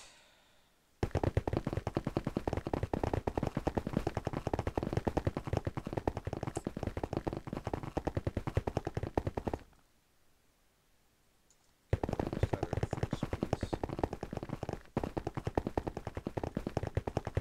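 A pickaxe chips rapidly and steadily at ice.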